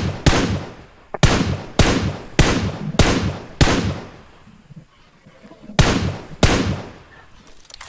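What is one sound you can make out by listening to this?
Rifle shots crack in quick succession, with echoes trailing after each.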